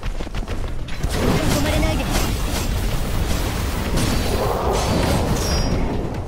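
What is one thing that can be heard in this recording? Heavy blows and metal clashes ring out in a fierce fight.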